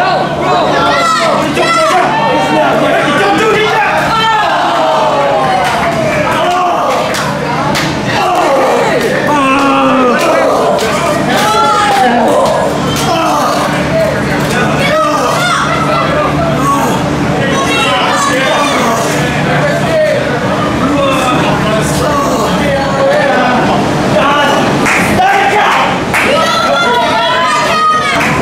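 A crowd of spectators chatters and shouts indoors.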